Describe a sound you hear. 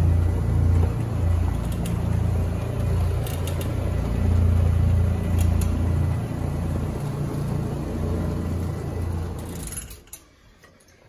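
A floor polishing machine hums and whirs steadily, close by.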